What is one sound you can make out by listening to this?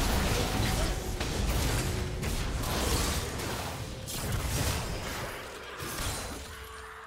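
Weapons clash and strike in quick hits.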